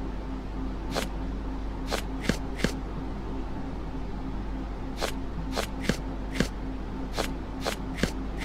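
Stone masks click sharply into place, one after another.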